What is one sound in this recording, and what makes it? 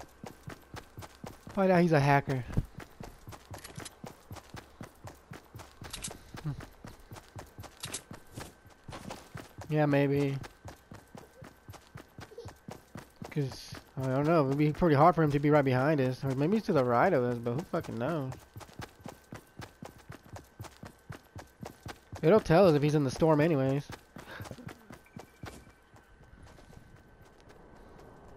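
Quick footsteps patter through grass.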